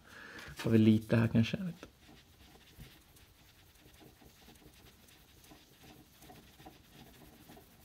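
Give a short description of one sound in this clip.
A cotton pad rubs softly against a phone's edge.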